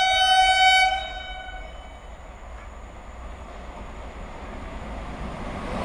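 A train approaches on the tracks from a distance, growing slowly louder.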